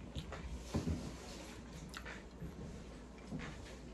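A young woman sips a drink through a straw close to a microphone.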